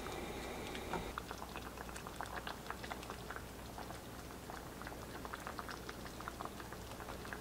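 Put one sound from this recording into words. A spoon stirs and clinks against a metal pot.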